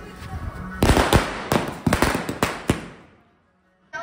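Firecrackers burst with sharp crackling bangs.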